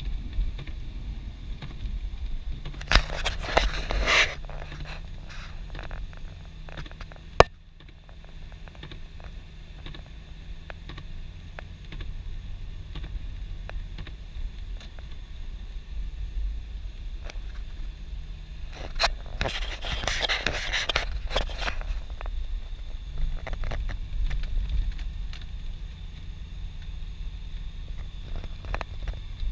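A car drives on a snow-covered road.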